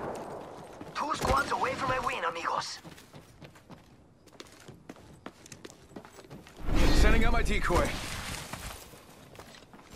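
A man talks animatedly into a microphone.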